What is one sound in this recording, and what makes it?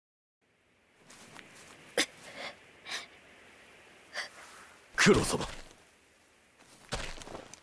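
Grass rustles as a figure moves through it.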